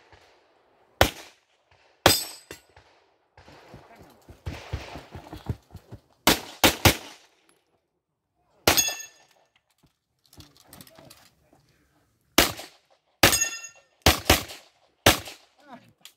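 Pistol shots crack loudly outdoors, one after another.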